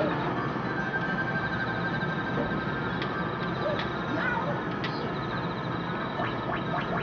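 Cheerful game music plays steadily through a small speaker.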